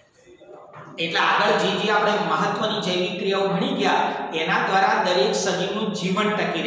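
A middle-aged man speaks clearly and with animation, close by.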